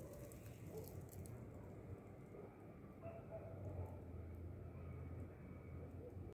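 Plastic wrap crinkles and rustles under a hand.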